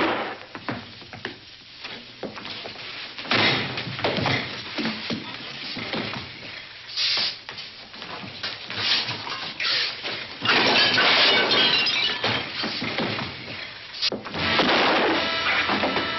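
Blows and bodies thud against furniture.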